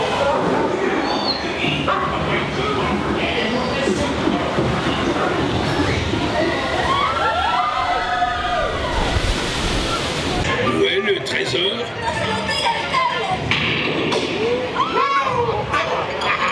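Men's voices shout and call out with animation in a noisy, echoing space.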